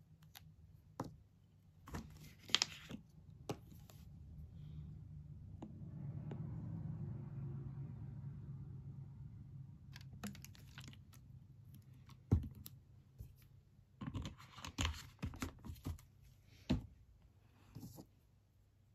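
Small objects knock down onto a table.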